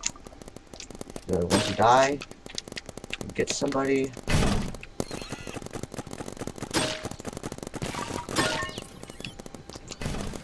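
A game gun fires with short sharp pops.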